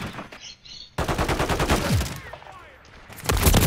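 A gun fires in rapid bursts nearby.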